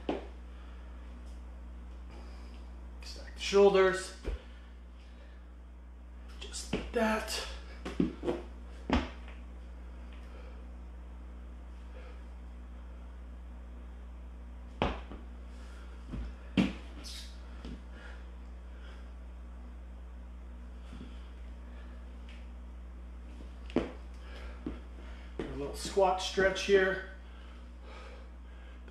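Sneakers thump and squeak on a wooden floor.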